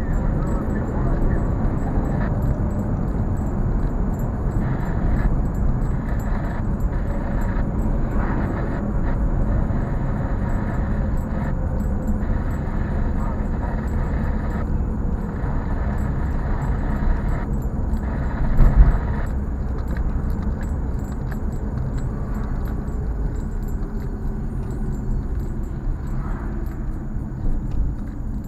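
Tyres roll on smooth pavement.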